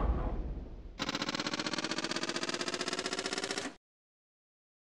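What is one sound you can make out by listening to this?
A pinball game plays a fast, pulsing electronic jingle that stops abruptly.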